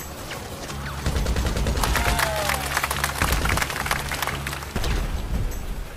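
Rapid rifle shots crack in quick bursts.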